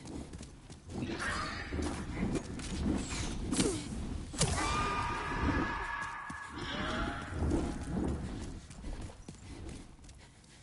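A sword slashes and strikes with heavy thuds.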